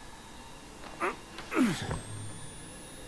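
A young man cries out in alarm, close to a microphone.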